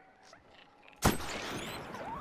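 A gun fires a single loud shot that echoes briefly.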